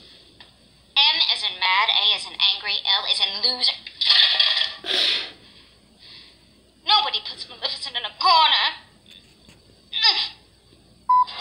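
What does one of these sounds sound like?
A woman speaks with a sly, animated voice through a television speaker.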